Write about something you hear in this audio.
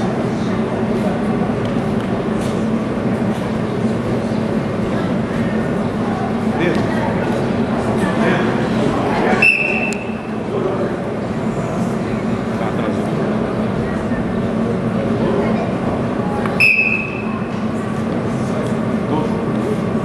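A crowd of spectators murmurs and chatters in a large, echoing hall.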